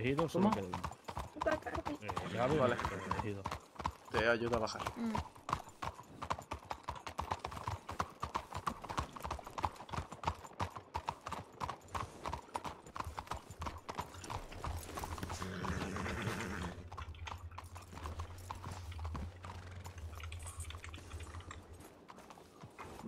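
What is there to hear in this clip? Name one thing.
A horse's hooves clop steadily on cobblestones.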